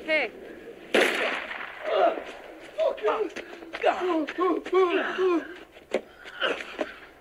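A middle-aged man shouts angrily.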